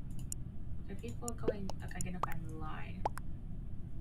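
A young woman speaks briefly and quietly into a close microphone.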